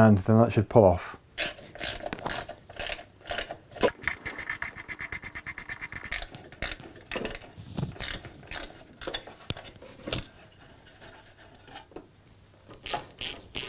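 Metal parts clink and rattle.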